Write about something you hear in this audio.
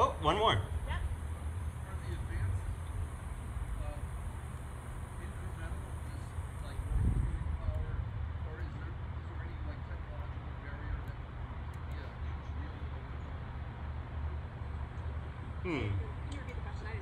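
A young man speaks through a microphone and loudspeaker, pausing now and then.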